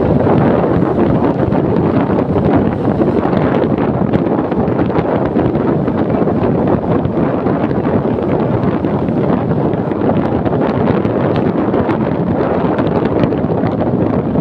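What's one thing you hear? Wind rushes loudly past an open car window.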